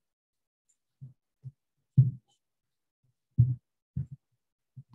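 Footsteps thud dully across a stage.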